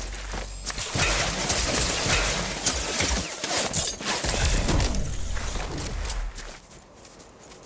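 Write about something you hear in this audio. Footsteps run quickly over soft ground.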